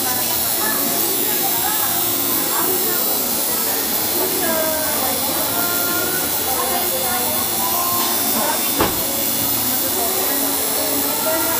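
A tattoo machine buzzes steadily.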